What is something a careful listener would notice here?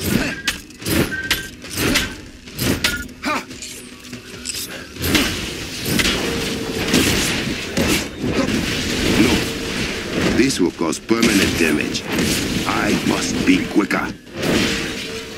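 Heavy metallic blows strike a rock pillar again and again.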